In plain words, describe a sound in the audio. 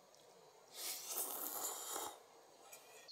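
A man slurps food close by.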